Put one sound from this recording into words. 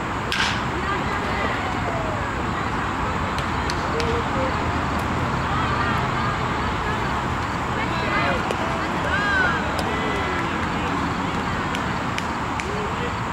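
Men and boys shout and call out across an open field.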